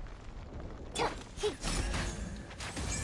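A weapon swings with a sharp whoosh.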